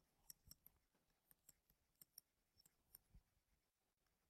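A stylus taps softly on a tablet while writing.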